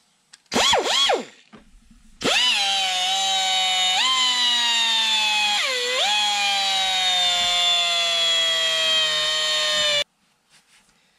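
A high-pitched rotary tool whines, revving up and down as it grinds metal.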